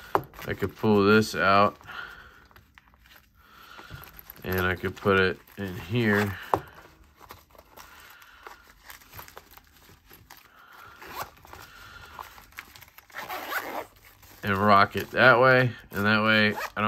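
Fabric rustles as a pouch is handled.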